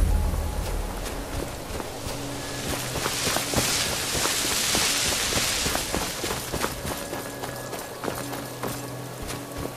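Wind blows and swells into a loud gust before easing.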